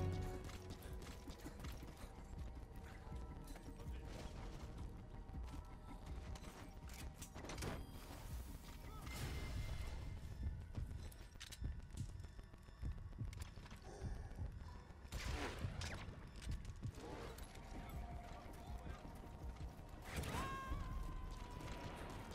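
Footsteps crunch quickly on dry gravel.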